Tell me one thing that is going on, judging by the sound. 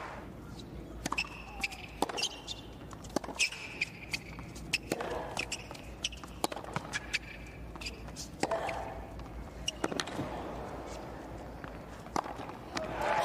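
A tennis ball is struck sharply back and forth with racquets.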